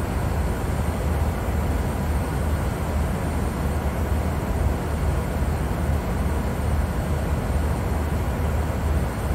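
Jet engines drone with a steady low roar.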